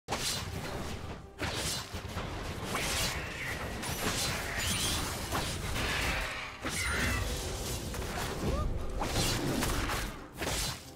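Sharp hits and impacts land over and over.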